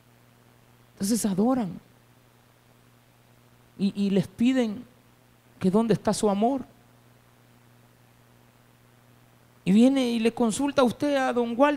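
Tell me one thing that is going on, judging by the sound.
A man preaches with emotion into a microphone over loudspeakers, in short bursts with pauses.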